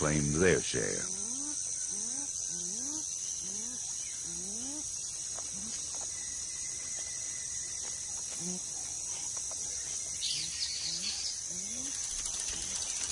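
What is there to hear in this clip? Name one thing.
A bird calls with short rising hoots, again and again.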